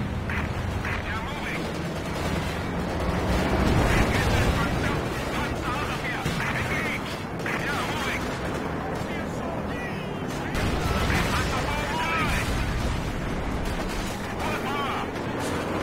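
Heavy tank engines rumble and clank steadily.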